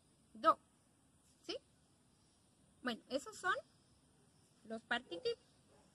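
A young woman speaks calmly and close by, reading out.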